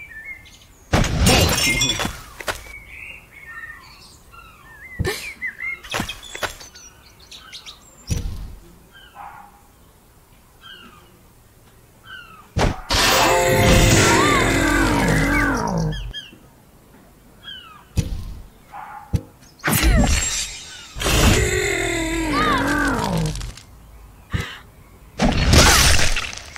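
Weapons strike and clash in a video game fight.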